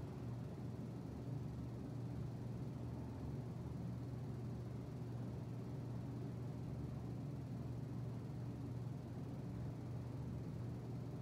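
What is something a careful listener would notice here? Electric fans hum steadily.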